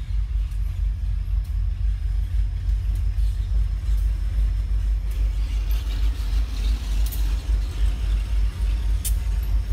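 A diesel locomotive rumbles past nearby.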